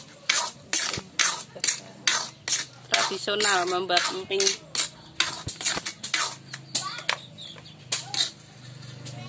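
A metal spatula scrapes and clatters in an iron pan.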